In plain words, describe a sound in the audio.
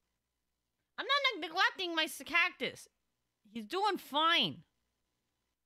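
A young woman speaks with animation into a microphone.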